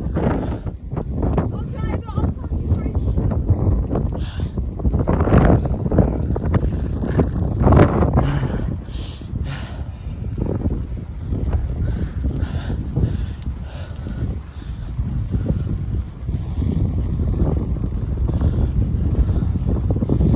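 Bicycle tyres roll along a smooth path.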